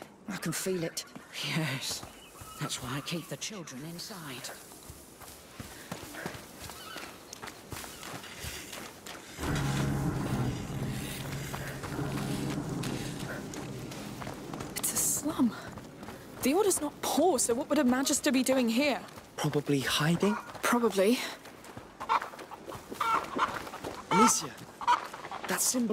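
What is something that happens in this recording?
Footsteps crunch on dry dirt at a walking pace.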